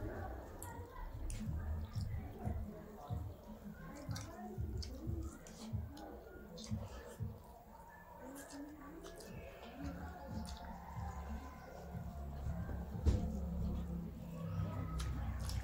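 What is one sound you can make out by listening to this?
Fingers squish and mix rice on metal plates.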